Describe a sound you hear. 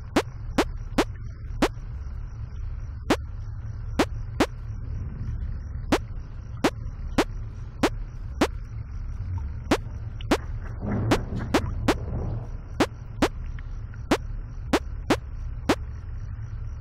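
A computer mouse clicks sharply again and again.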